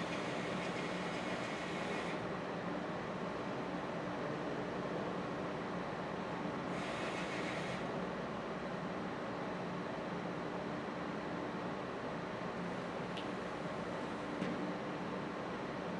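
A small machine hums steadily.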